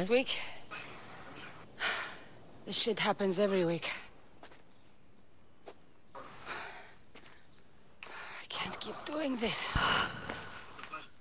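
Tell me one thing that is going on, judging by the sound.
A young woman speaks in an exasperated tone, close by.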